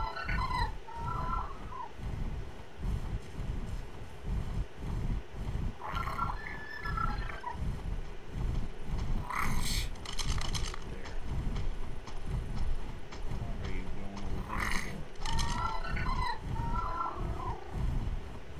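A large flying creature lets out shrill bending cries.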